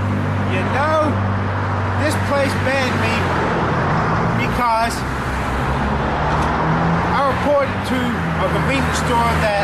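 A young man talks outdoors, close by.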